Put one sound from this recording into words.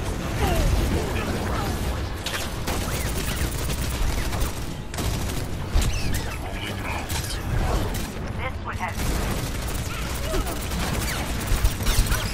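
Sci-fi weapon beams crackle and hum.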